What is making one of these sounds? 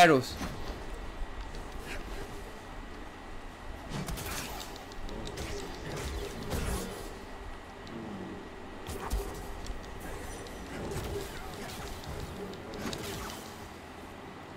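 A laser sword hums and whooshes as it swings.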